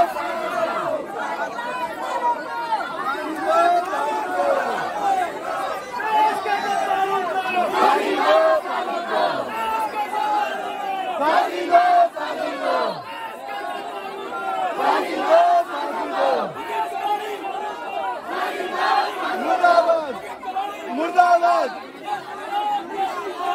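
A crowd of men shouts and talks over one another close by.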